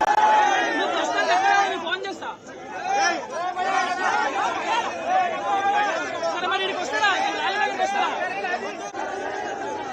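A crowd of men shouts and chants loudly.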